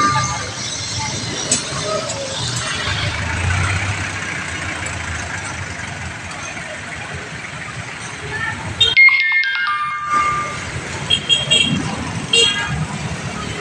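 Motorcycle engines hum and pass on a busy street.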